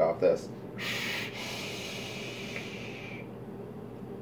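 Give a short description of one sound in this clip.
A young man inhales with a long hiss.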